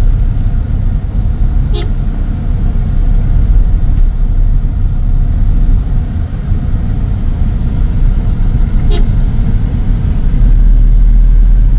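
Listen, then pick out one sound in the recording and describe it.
Motorbike engines buzz close by in the traffic.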